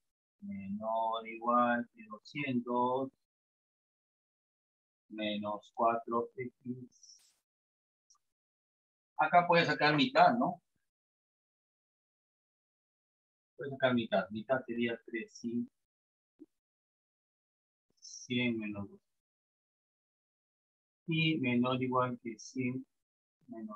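A man speaks calmly in short phrases, with pauses, close by.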